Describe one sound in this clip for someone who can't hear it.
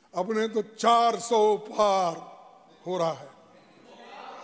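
An elderly man speaks with animation into a microphone in a large hall.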